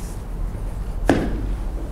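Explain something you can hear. A piece of chalk knocks against a ledge.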